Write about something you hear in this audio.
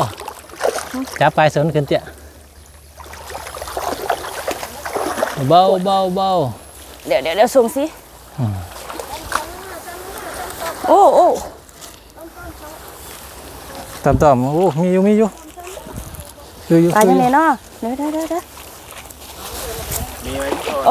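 A net swishes and splashes through shallow water.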